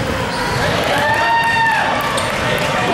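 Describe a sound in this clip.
A referee blows a whistle.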